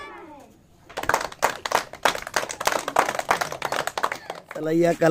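Children clap their hands in a quick rhythm.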